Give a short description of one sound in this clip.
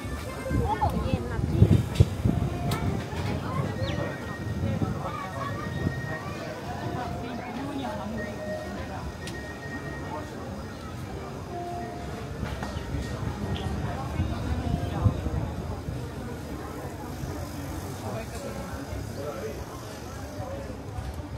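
Many people chatter nearby outdoors.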